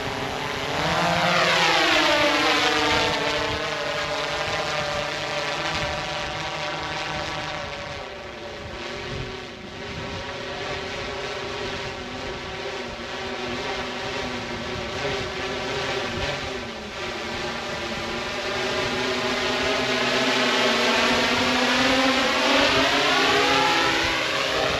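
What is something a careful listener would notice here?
A drone's propellers whine loudly overhead, rising and falling in pitch as it climbs and descends.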